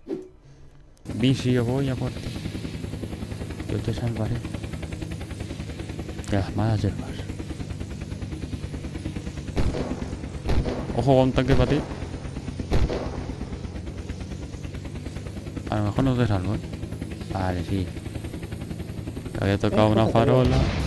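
Helicopter rotor blades thump rapidly and steadily.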